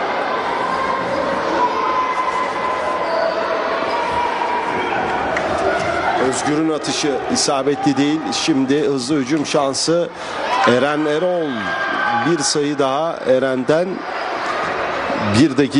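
A basketball bounces repeatedly on a wooden floor.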